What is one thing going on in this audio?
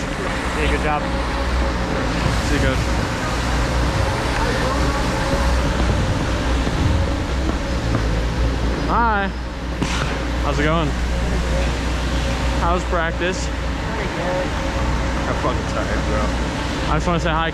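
Young men talk and call out nearby in a large echoing rink.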